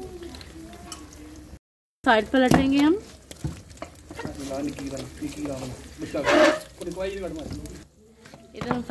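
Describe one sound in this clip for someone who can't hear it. Oil sizzles and bubbles in a frying pan.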